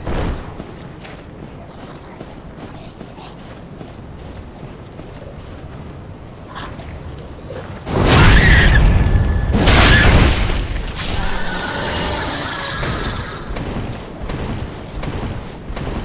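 Armored footsteps clank on stone.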